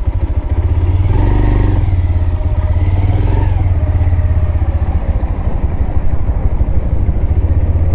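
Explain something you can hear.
A motorcycle engine putters steadily up close.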